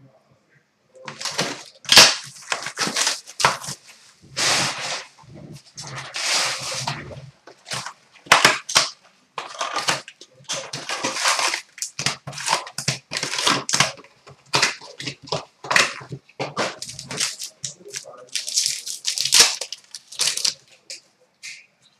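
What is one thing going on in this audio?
Foil card packs crinkle and tear open in quick bursts.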